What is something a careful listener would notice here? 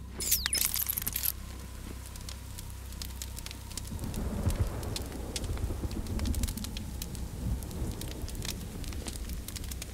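Fires crackle outdoors.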